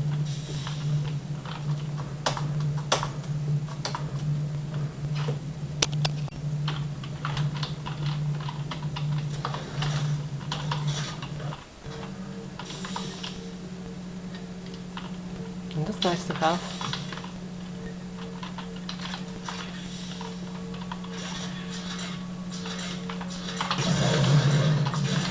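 Keyboard keys click and clatter under typing fingers.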